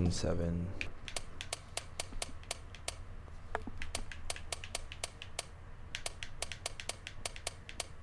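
A safe's combination dial clicks rapidly as it turns.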